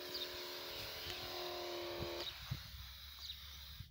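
A sprayer nozzle hisses as it sprays liquid.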